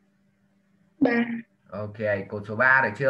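A young woman speaks calmly into a microphone, heard as if over an online call.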